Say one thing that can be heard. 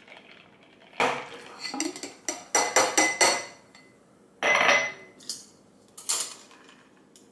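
Ice and glass clink and knock.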